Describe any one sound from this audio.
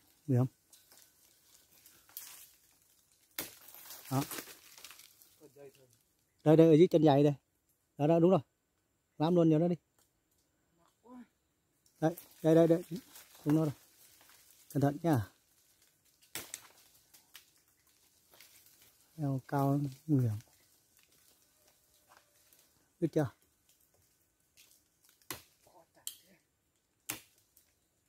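Leaves and branches rustle as someone climbs a tree.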